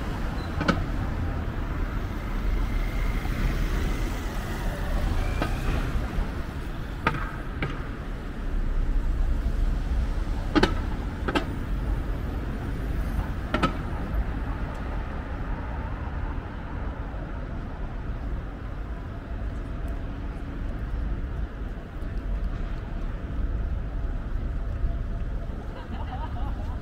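Traffic rumbles steadily in the distance.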